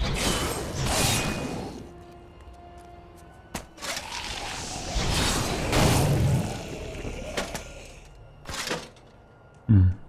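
Swords swing and strike in quick, noisy bursts.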